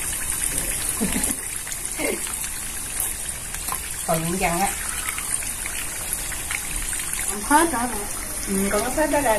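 Oil sizzles and crackles steadily in a frying pan.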